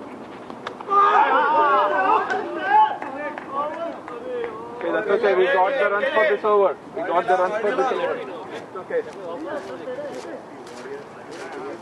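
Several men call out and shout across an open field outdoors.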